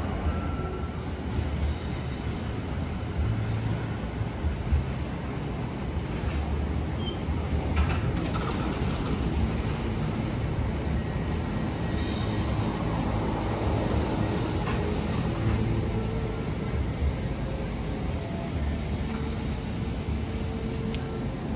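A monorail train rumbles closer along an elevated track and passes close by.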